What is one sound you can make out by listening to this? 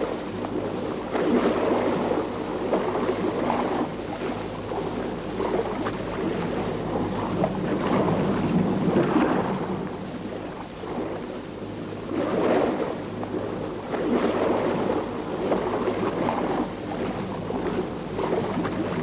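A paddle splashes through choppy sea water.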